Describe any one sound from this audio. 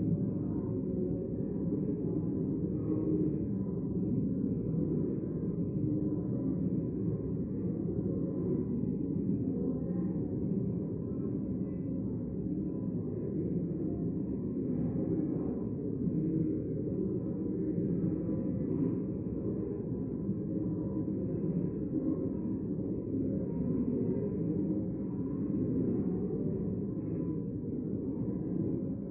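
A crowd of men and women murmurs and chats in a large echoing hall.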